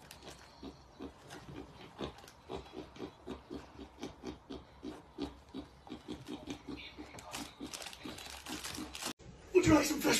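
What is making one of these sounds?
A pig grunts rapidly close by.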